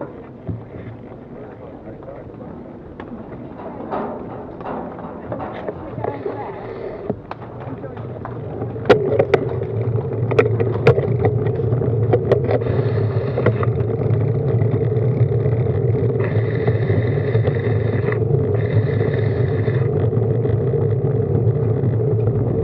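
Several road bicycles roll over tarmac.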